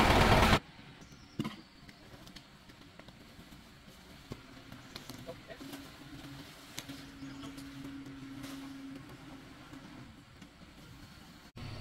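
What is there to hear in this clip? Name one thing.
A heavy log thuds and scrapes as it is dragged across the ground.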